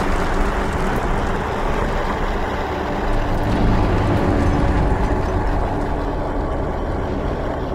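A strong wind roars in a storm.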